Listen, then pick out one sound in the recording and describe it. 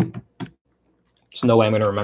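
A finger taps a laptop touchpad.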